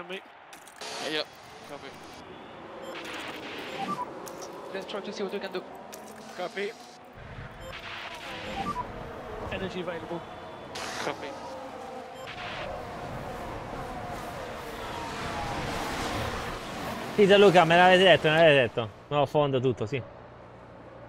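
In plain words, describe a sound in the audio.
Racing car engines roar and whine past.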